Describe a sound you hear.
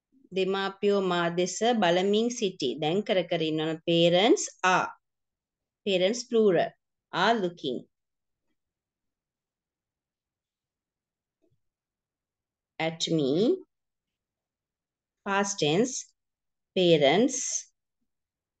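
A woman speaks slowly and clearly over an online call, reading out.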